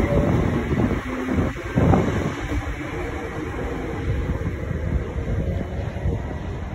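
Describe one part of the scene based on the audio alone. A train rumbles past close by, its wheels clattering on the rails.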